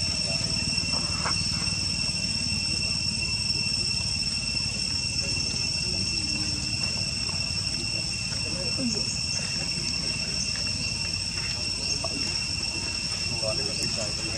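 A plastic wrapper crinkles as a small monkey handles it.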